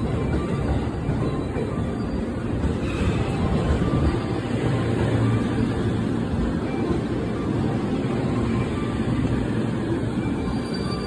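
A train rumbles past, its wheels clattering on the rails.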